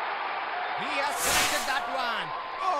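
Fireworks flare with a whooshing burst.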